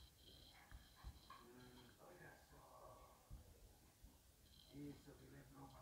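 A small dog whimpers softly close by.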